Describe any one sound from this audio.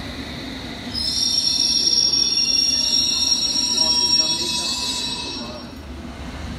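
Train door warning beeps sound loudly.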